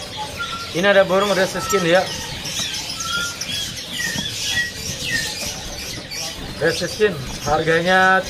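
A small bird chirps and whistles.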